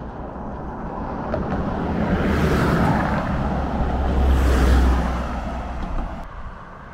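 Cars pass by on the road.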